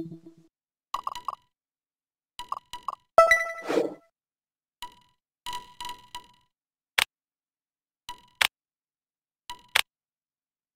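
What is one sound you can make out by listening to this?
Short electronic menu blips and clicks sound now and then.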